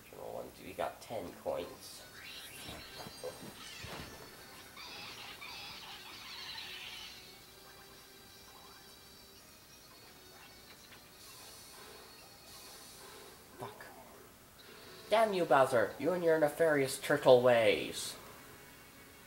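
Video game sound effects chime and jingle from a television.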